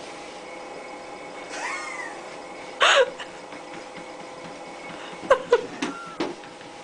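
A treadmill motor hums steadily.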